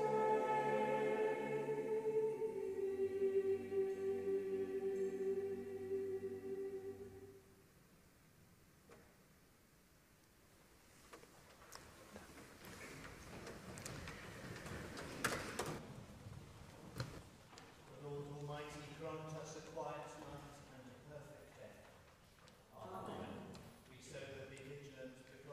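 A congregation sings together in a large echoing hall.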